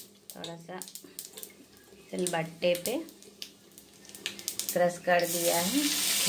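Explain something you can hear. Seeds crackle and pop in hot oil.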